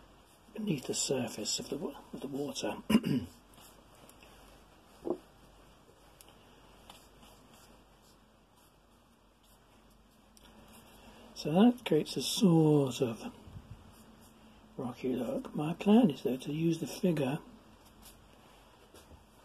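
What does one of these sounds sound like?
A brush dabs and scrapes softly on paper.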